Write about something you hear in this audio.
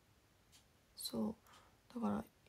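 A young woman speaks briefly and softly close to a microphone.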